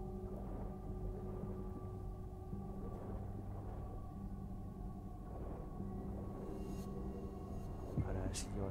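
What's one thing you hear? A low underwater rumble hums steadily.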